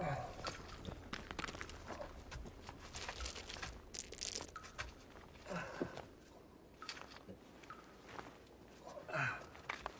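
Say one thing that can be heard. Loose rocks crunch and scrape as a person crawls.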